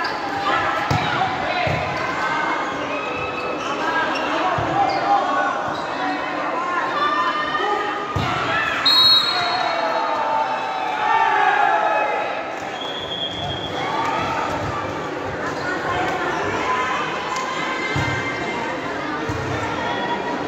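A large crowd of spectators cheers and shouts in a big echoing hall.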